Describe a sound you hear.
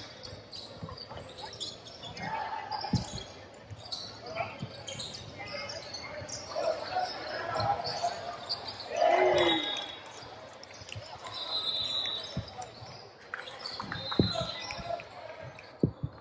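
Sneakers squeak sharply on the court.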